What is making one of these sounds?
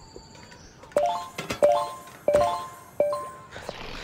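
Bright game chimes ring out in quick bursts.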